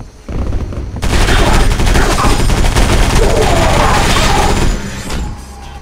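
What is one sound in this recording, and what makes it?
Automatic guns fire in rapid bursts.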